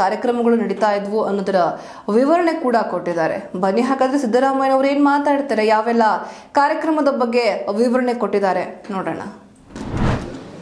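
A young woman reads out news steadily into a microphone.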